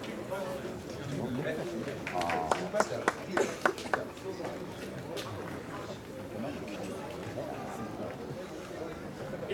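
A middle-aged man speaks through a microphone over a loudspeaker.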